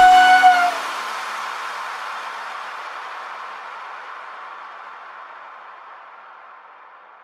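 Wind rushes past a moving cyclist.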